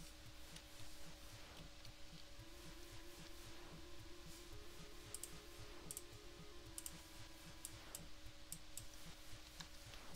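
Short electronic blips sound as arrows are fired.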